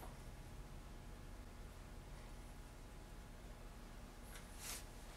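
Fingers quietly scrape and smooth soft clay.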